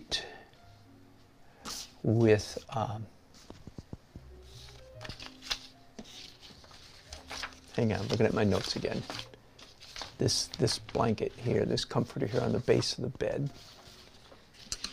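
A small brush strokes lightly on paper.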